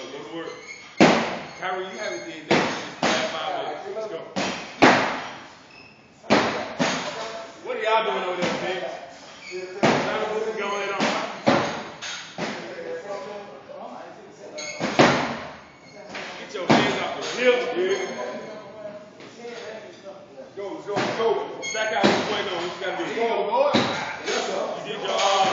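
Weight plates clank and bang as a barbell is dropped on the floor.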